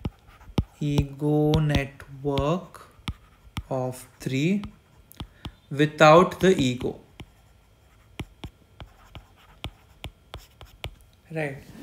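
A stylus taps and scratches on a glass tablet surface.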